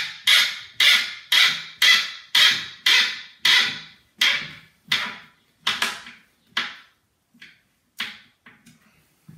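A hand tool clicks sharply in a steady rhythm, slowing and growing quieter.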